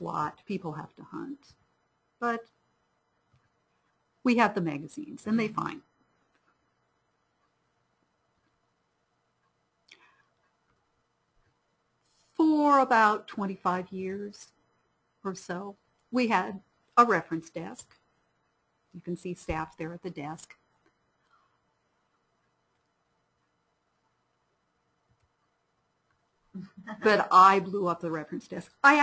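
A woman speaks calmly through a microphone in an online call, with pauses.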